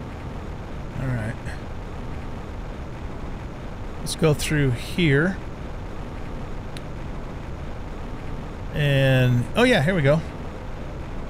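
A man speaks briefly and casually into a close microphone.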